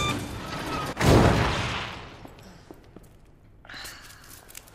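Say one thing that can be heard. A metal shutter rattles and clatters.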